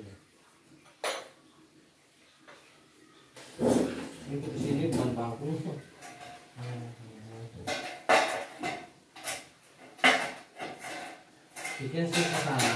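Hands knock and scrape against a thin wall panel.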